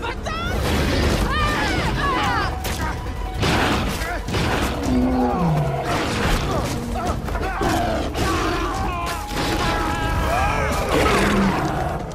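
Scuffling and thuds of a fight sound close by.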